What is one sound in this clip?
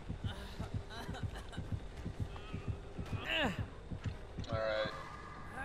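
Footsteps thud quickly through tall grass.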